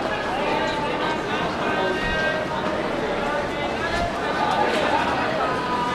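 Many footsteps shuffle on pavement.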